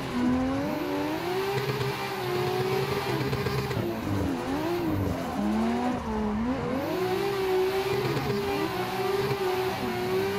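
A racing car engine revs hard, rising and dropping in pitch as gears shift.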